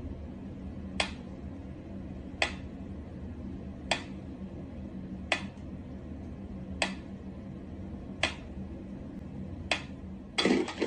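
A metronome ticks slowly and steadily.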